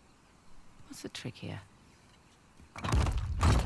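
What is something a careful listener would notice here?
A second young woman asks a question, close by.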